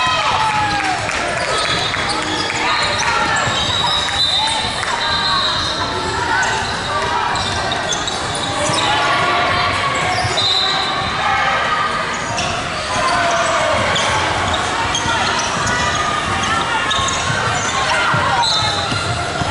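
Basketball shoes squeak sharply on a wooden court in a large echoing hall.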